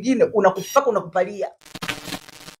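A woman speaks with animation close to a microphone.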